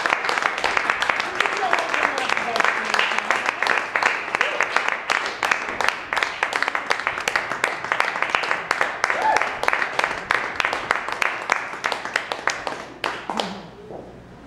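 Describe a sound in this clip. A piano is played with rapid, dense strikes.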